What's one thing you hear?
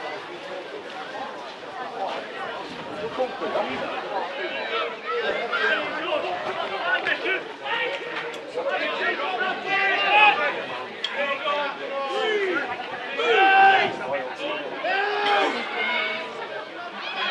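Spectators shout and call out from the sidelines outdoors.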